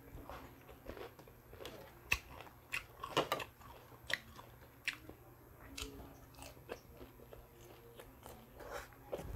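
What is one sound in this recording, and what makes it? A man chews and smacks his lips loudly, close up.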